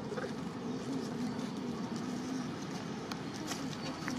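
A monkey walks over dry leaves, rustling them.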